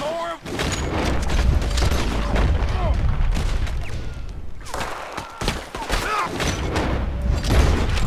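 Gunshots crack repeatedly, echoing outdoors.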